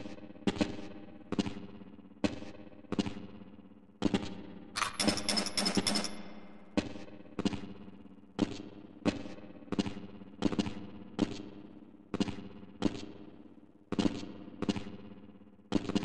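Landing footsteps thud on hard ground at a steady pace, each with a short echo.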